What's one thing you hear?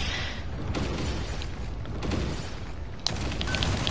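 A mech's thrusters roar as it boosts.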